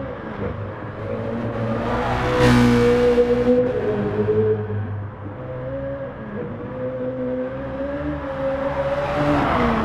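A racing car engine roars, its pitch rising and falling as it shifts gears through the bends.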